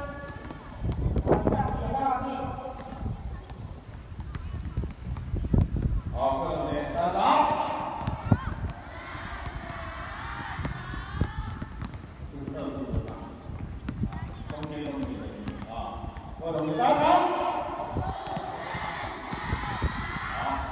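A large crowd of children chant together outdoors.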